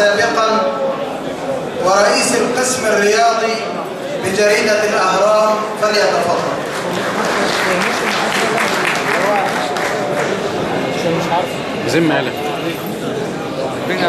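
A crowd of men murmurs and chatters in a large echoing hall.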